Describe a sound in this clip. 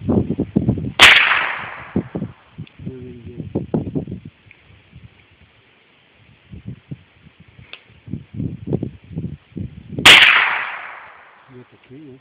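A rifle fires two shots outdoors, each echoing away.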